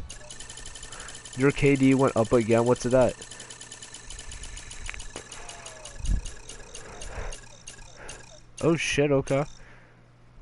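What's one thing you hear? A game's spinning item reel ticks rapidly, gradually slowing down.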